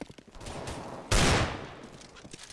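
A gunshot cracks loudly once.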